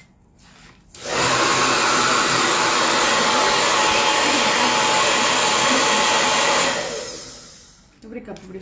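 A hair dryer blows steadily, then winds down.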